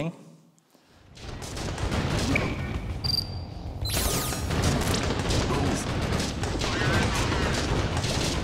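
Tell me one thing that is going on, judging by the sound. Gunfire and explosions rumble in a game battle.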